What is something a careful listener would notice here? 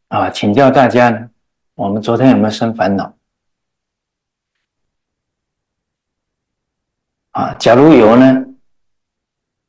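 An elderly man speaks calmly and closely into a microphone, with pauses.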